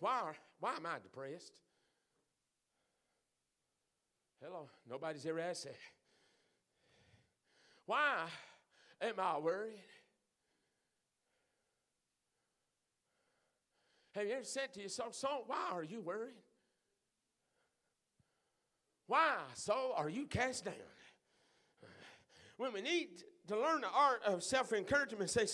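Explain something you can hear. A middle-aged man preaches through a microphone in a large echoing hall, speaking in phrases with pauses.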